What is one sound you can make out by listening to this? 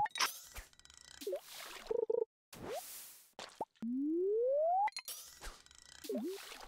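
Short electronic game sound effects chirp and pop.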